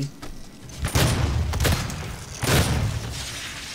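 A shotgun fires a loud blast.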